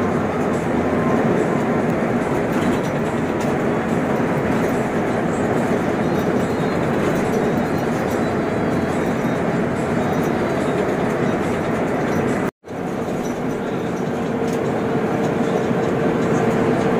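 Tyres roar steadily on a concrete road.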